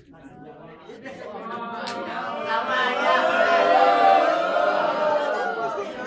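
Young women chatter and laugh nearby.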